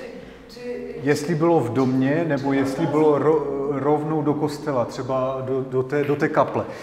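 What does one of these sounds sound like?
A man speaks with animation to an audience in an echoing hall.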